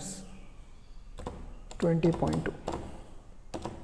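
Calculator keys click under a finger.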